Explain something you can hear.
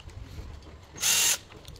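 A chainsaw's starter cord is pulled with a quick rasp.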